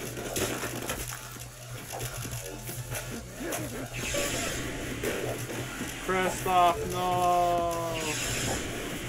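Guns fire in quick bursts.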